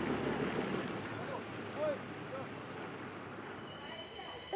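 A pickup truck drives away, its engine rumble fading.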